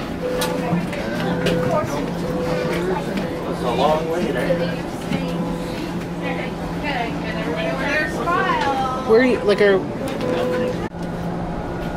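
A train hums steadily as it rolls along.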